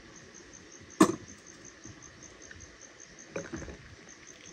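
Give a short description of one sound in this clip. A glass clinks against a saucer.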